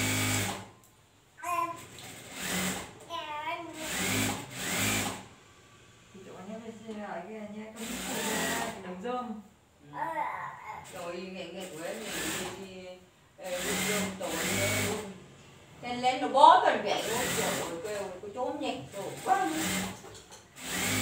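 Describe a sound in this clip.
A sewing machine whirs in short bursts.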